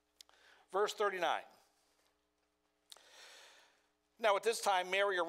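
An older man speaks with emphasis through a microphone.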